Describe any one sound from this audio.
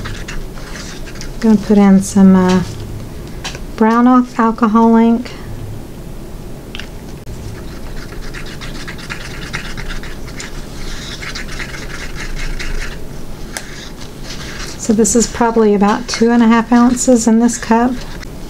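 A wooden stick stirs and scrapes inside a cup.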